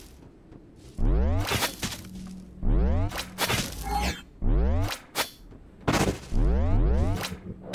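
Deep energy blasts boom and ring out again and again.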